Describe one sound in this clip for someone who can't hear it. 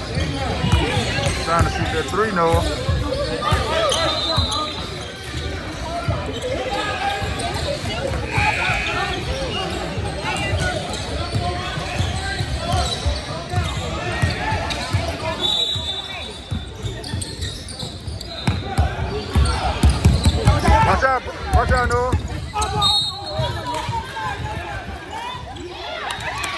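A basketball bounces on a hard floor in a large echoing gym.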